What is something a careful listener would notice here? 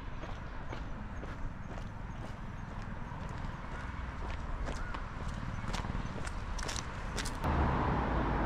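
Footsteps tap steadily on a paved path.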